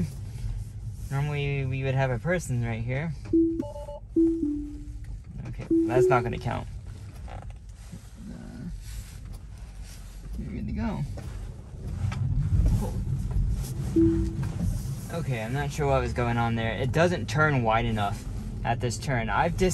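Tyres rumble low on the road as a car drives.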